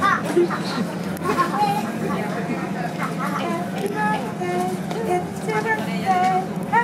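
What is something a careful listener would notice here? Children chatter and shout nearby.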